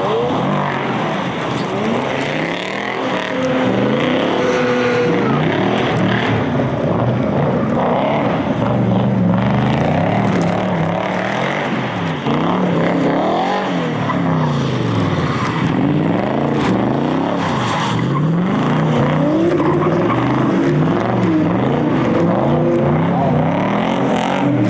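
Tyres screech as cars drift.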